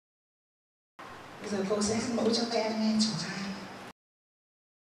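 A woman sings into a microphone.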